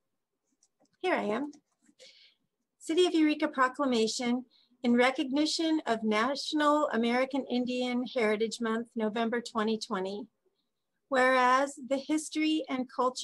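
A middle-aged woman speaks calmly and steadily over an online call.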